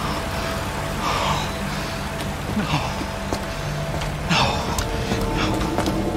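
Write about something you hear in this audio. A man cries out in distress.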